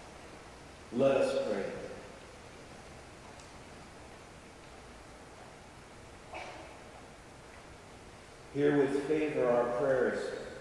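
A man sings a short chant into a microphone in a large echoing hall.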